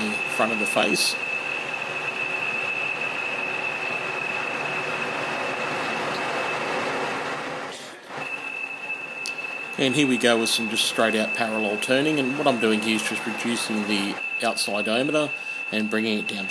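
A metal lathe spins with a steady high whine.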